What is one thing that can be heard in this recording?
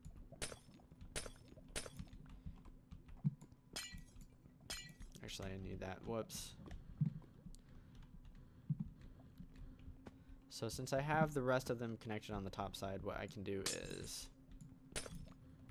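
Blocks crack and break under a pickaxe in short bursts.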